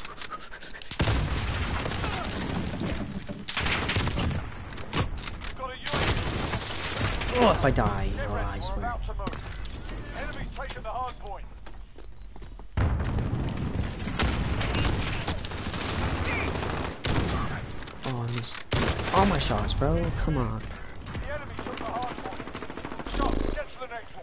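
A bolt-action sniper rifle fires sharp, booming shots.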